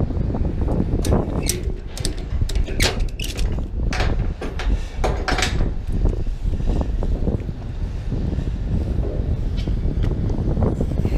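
A ratchet strap clicks as it is tightened.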